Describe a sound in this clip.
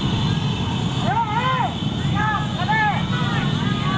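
A man calls out loudly close by.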